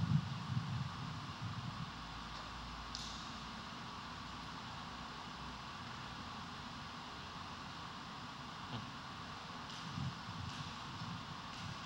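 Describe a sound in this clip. A man reads out quietly at a microphone in an echoing hall.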